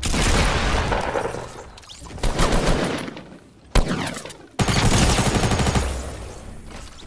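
Gunshots bang loudly in quick bursts.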